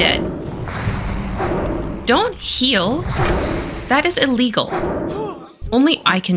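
Spell effects whoosh and crackle in a fight.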